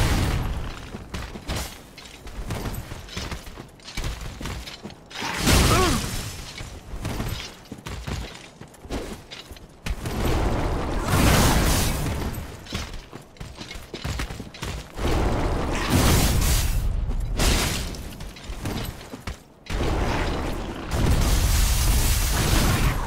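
Ice crystals shatter and crackle loudly in bursts.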